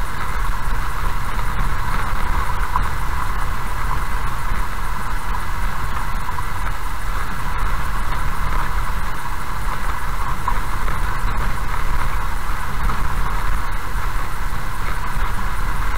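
A car's engine hums steadily from inside the cabin.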